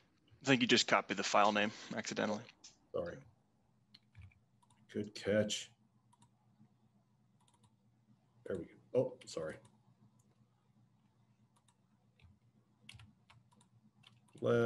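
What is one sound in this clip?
A man speaks calmly over an online call, in short bursts with pauses.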